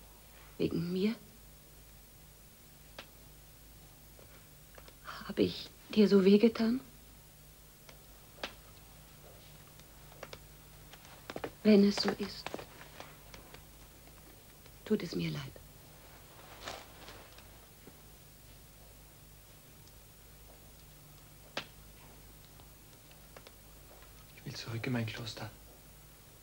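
A woman speaks softly in short, hushed phrases nearby.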